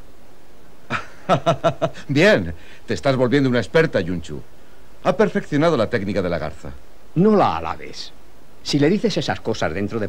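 A man speaks firmly and clearly, close by.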